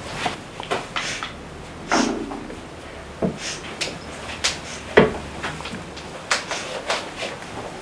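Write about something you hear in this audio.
A young woman sniffles and sobs quietly.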